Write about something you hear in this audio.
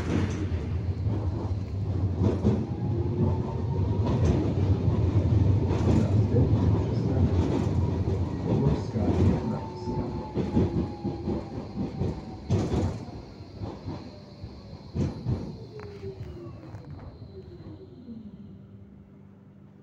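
A tram rumbles and rattles along its tracks, slowing down.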